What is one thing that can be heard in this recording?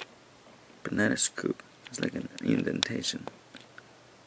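A small plastic toy car taps down and rolls softly on carpet.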